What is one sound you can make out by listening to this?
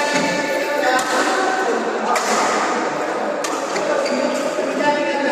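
Shuttlecocks are struck with sharp pops of rackets.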